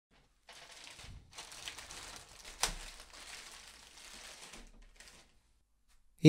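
A plastic mailing bag crinkles and rustles as hands tear it open.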